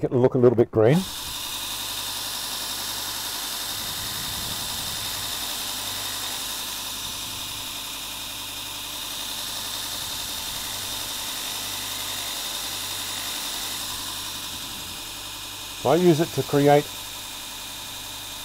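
A motorised grinder hums and whirs steadily.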